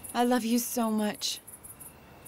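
A young woman speaks softly up close.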